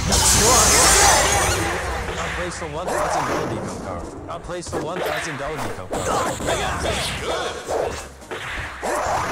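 Bouncy, chirpy game sound effects play in quick bursts.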